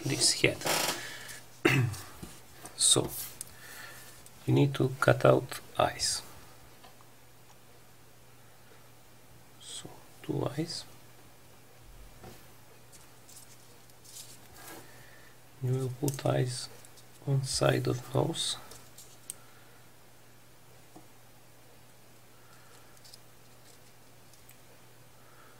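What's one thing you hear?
Folded paper rustles and crinkles under fingers.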